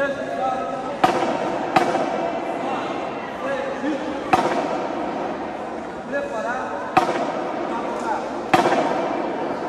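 Drummers strike loud single beats on snare drums.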